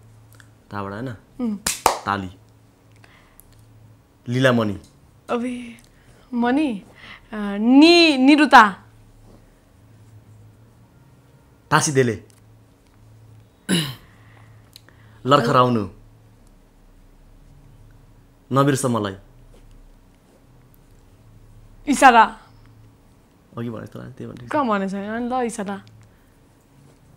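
A young man talks calmly close to a lapel microphone.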